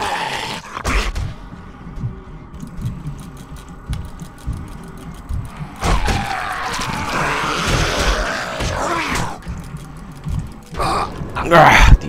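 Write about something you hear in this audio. A zombie snarls and growls up close.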